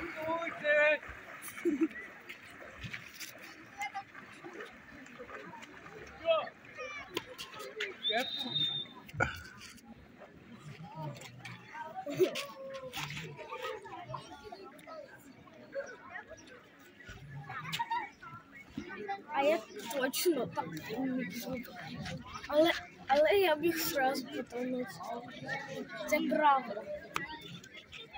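A swimmer splashes through calm water.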